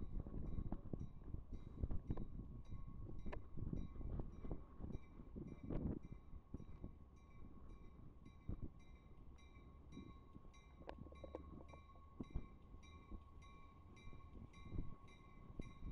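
A train rumbles along the tracks as it approaches.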